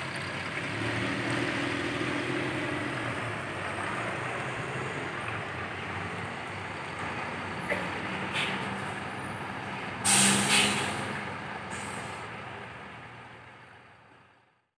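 A bus engine rumbles steadily as a bus drives slowly past.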